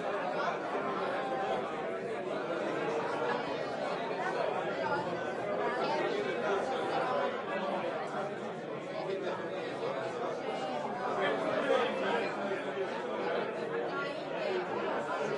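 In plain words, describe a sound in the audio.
A crowd of men and women chatter and talk over one another in a room.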